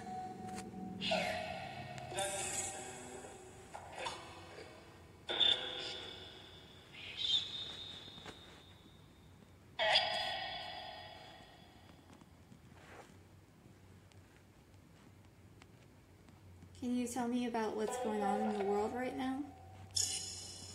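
An electronic device plays chiming tones and short jingles.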